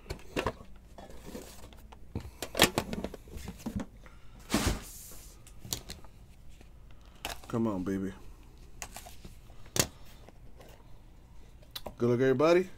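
Plastic card wrappers crinkle and rustle as hands handle them.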